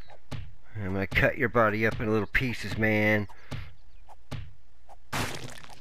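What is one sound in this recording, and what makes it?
A club chops wetly into a body.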